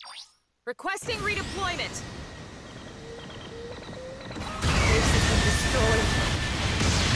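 A robot's thrusters roar with a heavy rumble.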